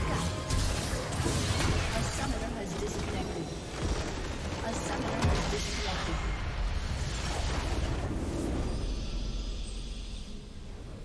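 Game spells and attacks crash and whoosh loudly.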